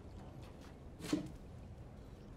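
A cat lands with a thump after a jump.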